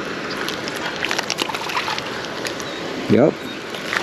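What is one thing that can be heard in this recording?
A small fish splashes at the surface of the water.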